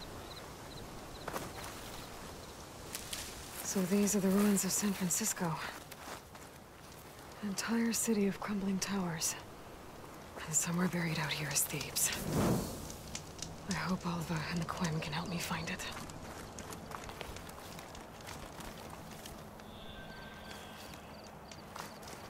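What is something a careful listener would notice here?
Footsteps rustle through dense leafy plants.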